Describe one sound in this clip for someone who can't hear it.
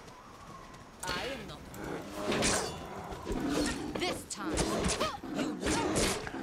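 Bears growl and roar.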